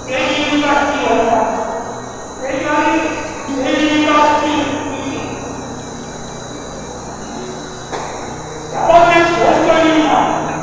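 An elderly man speaks with animation into a microphone, his voice echoing through loudspeakers.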